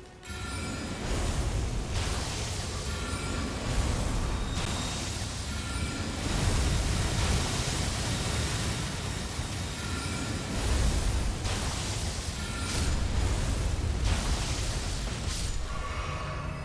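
Magic spells crash and roar loudly.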